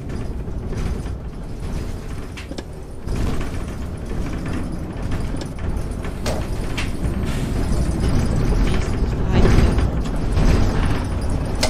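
Tyres roll over cobblestones.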